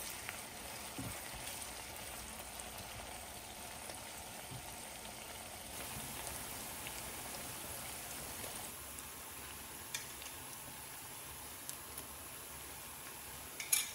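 Onions sizzle in oil in a frying pan.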